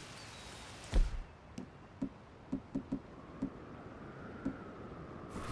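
Short soft clicks tick several times in quick succession.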